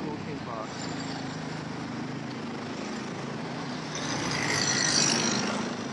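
A motor scooter engine hums as it rides past close by.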